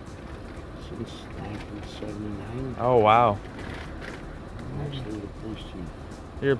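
An older man answers quietly from inside a car.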